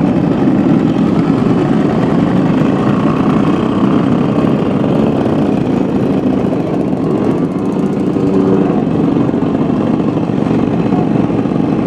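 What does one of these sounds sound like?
Several two-stroke moped engines idle and buzz close by.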